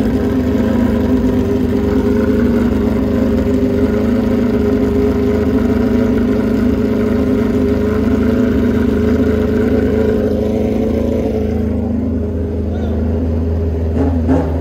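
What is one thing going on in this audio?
A racing motorcycle engine idles loudly with a steady rumble.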